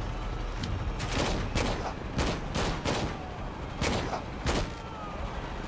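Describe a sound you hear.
Gunshots fire in quick bursts, each ringing out briefly.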